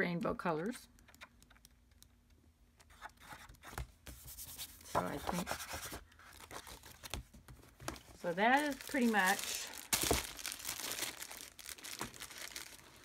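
Sheets of stiff paper rustle and flap as they are leafed through.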